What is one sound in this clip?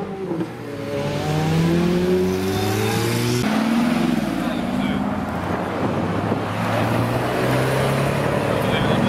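A sports car engine revs loudly as it drives past.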